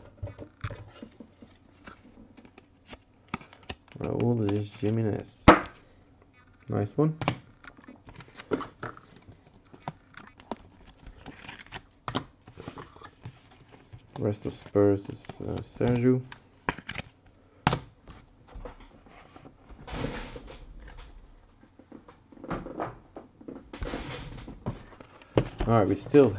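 Trading cards in plastic sleeves rustle and click as they are handled.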